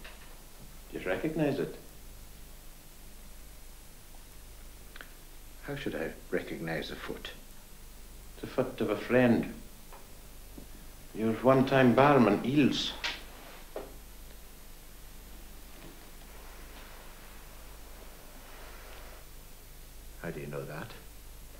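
A man speaks calmly nearby, in short phrases with pauses.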